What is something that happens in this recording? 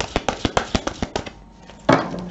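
Cards flick rapidly as a deck is shuffled.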